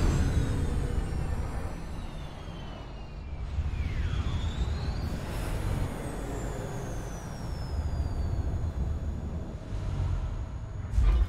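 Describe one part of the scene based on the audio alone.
Huge flames roar with a deep rumble.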